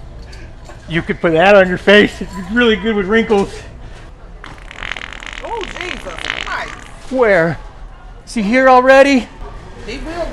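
A middle-aged man speaks angrily nearby.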